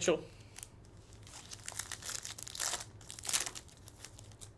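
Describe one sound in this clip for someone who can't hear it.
A foil wrapper crinkles and tears close by.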